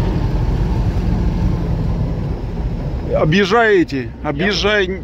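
A vehicle engine rumbles steadily while driving over rough ground.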